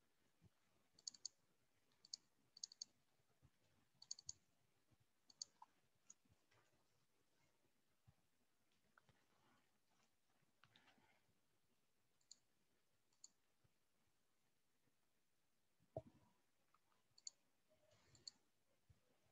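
Keys click on a keyboard in short bursts.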